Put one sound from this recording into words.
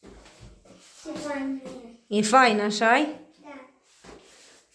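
A young boy talks excitedly.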